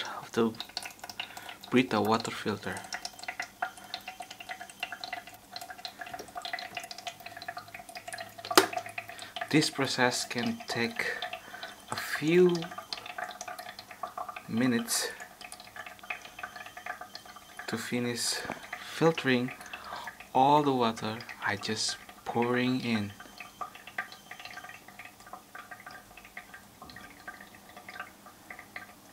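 Water trickles steadily into a plastic jug.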